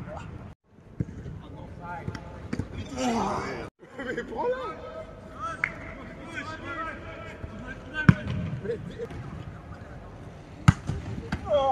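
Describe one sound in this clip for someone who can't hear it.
A football is kicked hard with sharp thuds.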